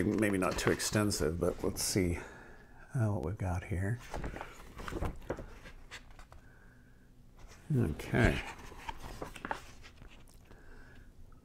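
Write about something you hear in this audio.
Stiff paper rustles and flaps as pages are turned.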